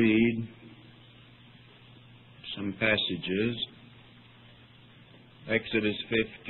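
An elderly man speaks slowly and calmly in short phrases with pauses, heard through an old recording.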